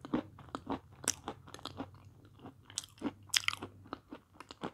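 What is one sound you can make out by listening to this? A woman slurps and sucks on soft food close to a microphone.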